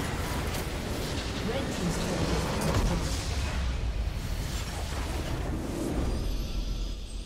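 Game spell effects crash and explode in a loud battle.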